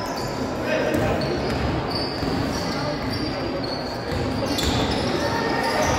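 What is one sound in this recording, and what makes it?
A crowd of spectators murmurs and calls out in an echoing gym.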